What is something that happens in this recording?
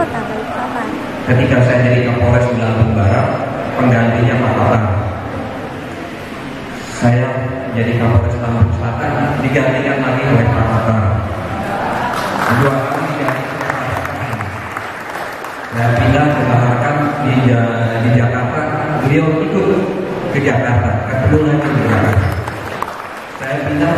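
A man gives a speech through a microphone and loudspeakers in a large echoing hall.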